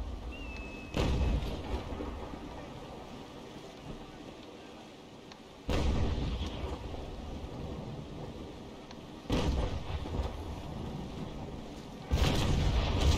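Cannons fire with deep booming blasts that echo away.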